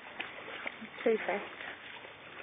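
A dog yelps briefly nearby.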